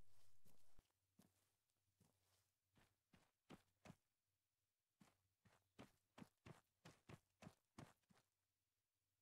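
Quick footsteps crunch over dirt and grass.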